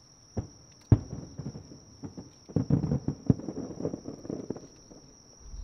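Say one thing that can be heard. Fireworks crackle and pop after bursting.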